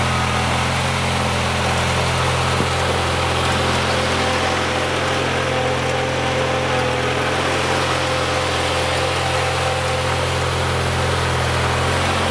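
A plow blade scrapes and pushes snow.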